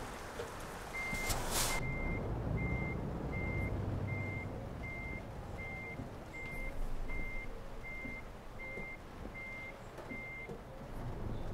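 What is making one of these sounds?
A truck's warning signal beeps at an even pace.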